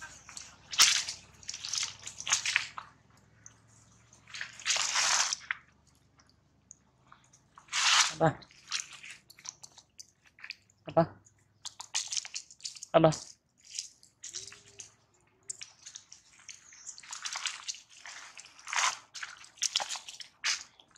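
A monkey sucks and slurps at a plastic bottle.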